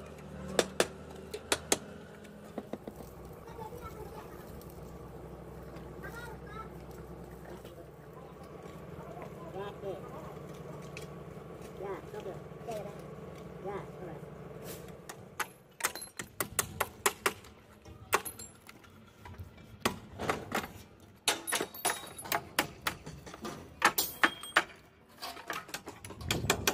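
Metal formwork panels clank and rattle as they are tightened and pried loose.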